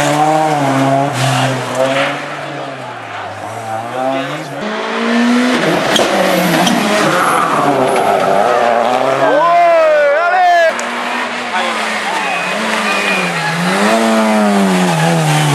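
A rally car engine revs hard and changes gear as the car speeds past.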